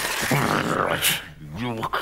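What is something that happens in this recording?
A cat yowls.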